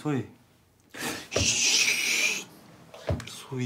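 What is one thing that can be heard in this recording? A man sniffles and sobs.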